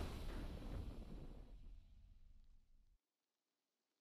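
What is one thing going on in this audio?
A triumphant game fanfare rings out and quickly fades to silence.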